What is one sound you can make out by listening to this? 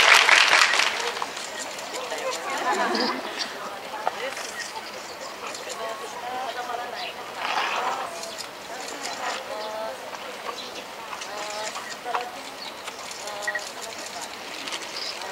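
Women in a crowd chatter and call out nearby.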